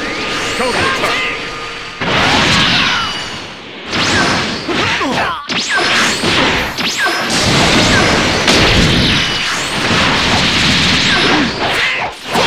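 Punches and kicks land with sharp impacts.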